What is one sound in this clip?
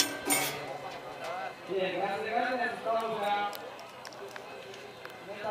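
A crowd of people talk and call out outdoors nearby.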